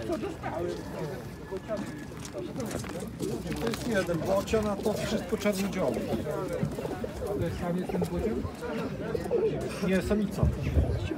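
Many pigeons coo in crates close by.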